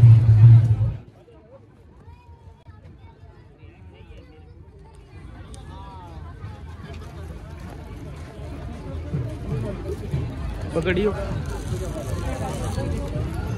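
Footsteps shuffle on a dirt path.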